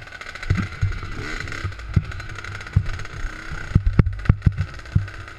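A dirt bike's suspension thumps and knocks over bumps.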